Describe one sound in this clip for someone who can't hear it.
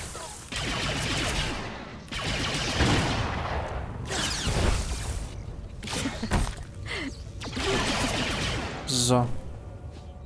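Energy blasts crackle and whoosh in combat.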